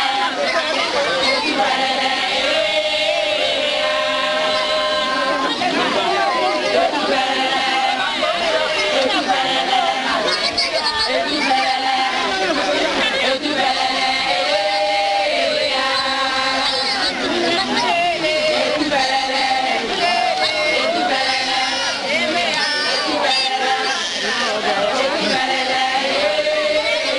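A crowd of women sings together loudly outdoors.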